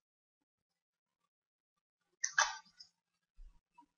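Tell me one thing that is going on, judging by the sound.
A computer mouse button clicks once.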